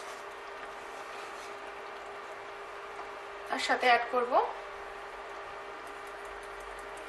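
A wooden spoon stirs a thick sauce in a pan with soft, wet swishing.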